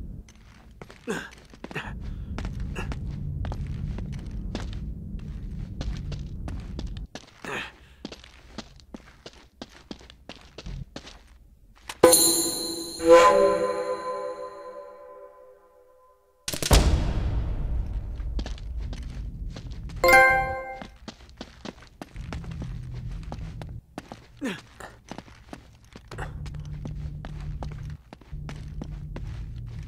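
Footsteps scuff and tap on rock.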